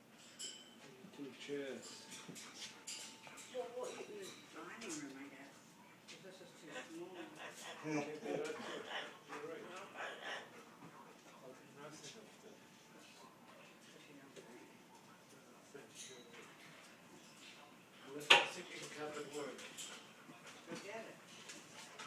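A parrot chatters and squawks nearby.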